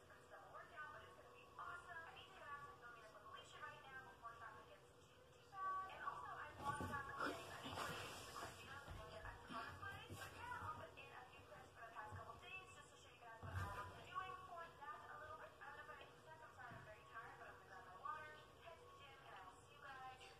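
A young girl talks calmly close by.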